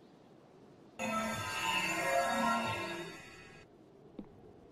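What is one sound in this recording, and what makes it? A magic spell shimmers and sparkles loudly.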